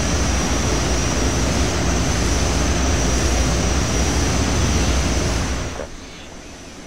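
A propeller plane's engines roar loudly close by.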